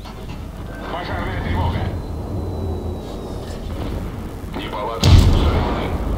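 Naval guns fire in loud booming blasts.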